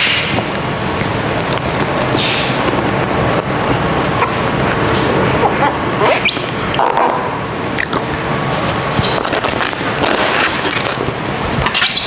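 A plastic squeegee scrapes and squeaks over wet film.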